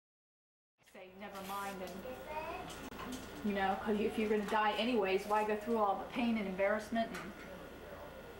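A little girl chatters in a high voice close by.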